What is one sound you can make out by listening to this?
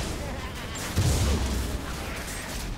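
A magical blast booms loudly.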